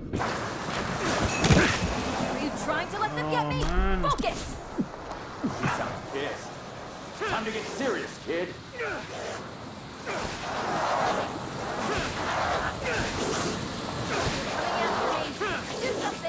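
Magical energy blasts crackle and whoosh repeatedly.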